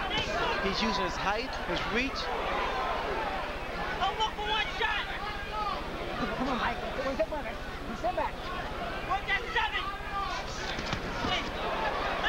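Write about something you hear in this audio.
A large crowd cheers and shouts loudly in a big arena.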